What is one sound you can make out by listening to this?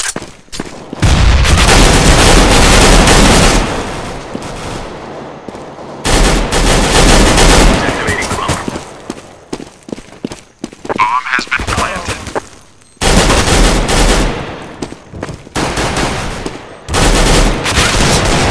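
A rifle fires in rapid bursts that echo loudly.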